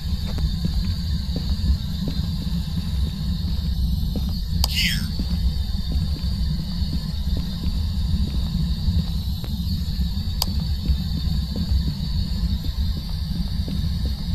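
A radio crackles and hisses with static as it is tuned.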